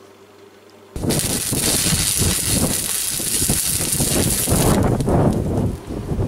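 A cutting torch hisses and roars steadily.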